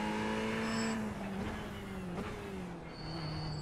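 A racing car engine drops in pitch as it slows down.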